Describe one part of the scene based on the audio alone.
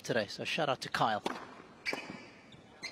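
A tennis ball is struck hard with a racket.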